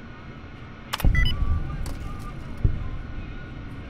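A computer terminal beeps and whirs as it unlocks.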